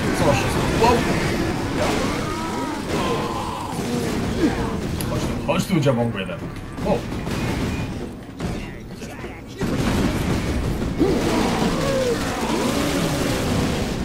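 A chainsaw-like blade revs and tears through flesh.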